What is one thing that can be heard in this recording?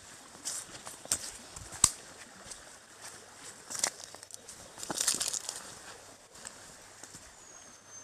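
Bamboo stems rustle and knock as they are brushed aside.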